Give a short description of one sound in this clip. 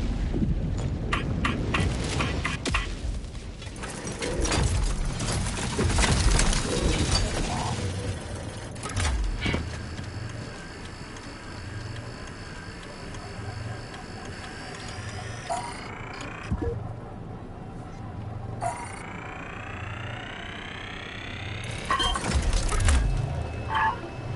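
Short electronic beeps sound as buttons are pressed on a control panel.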